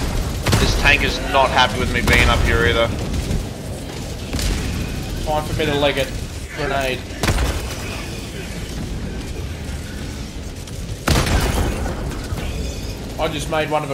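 Laser blasts zip past.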